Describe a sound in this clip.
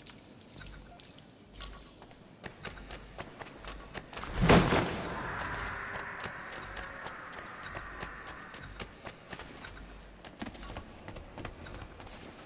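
Quick footsteps run on a hard floor.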